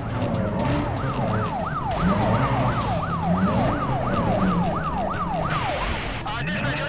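A police siren wails rapidly up and down.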